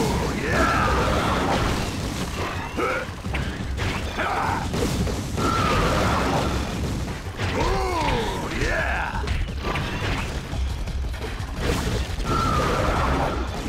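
Fire bursts roar and crackle in a fight.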